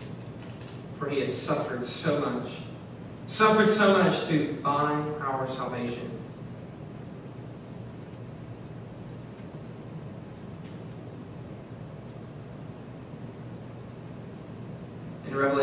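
A young man speaks calmly through a microphone, with long pauses.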